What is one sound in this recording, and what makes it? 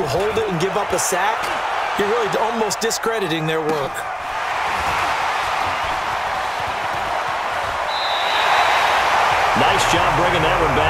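A stadium crowd roars, swelling louder toward the end.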